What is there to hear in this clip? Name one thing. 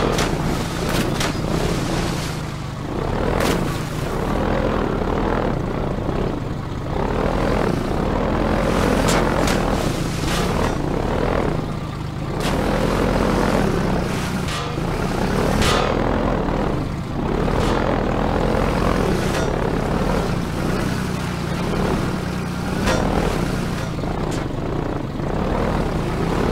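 An airboat engine roars steadily throughout.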